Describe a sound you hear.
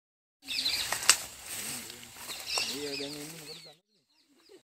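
Tall dry grass rustles as people push through it.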